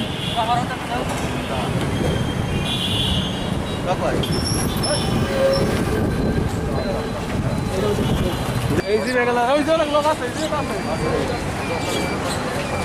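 Several men talk outdoors.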